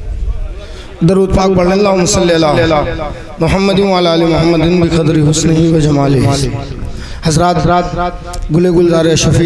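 A middle-aged man chants loudly into a microphone over a loudspeaker, in a reverberant space.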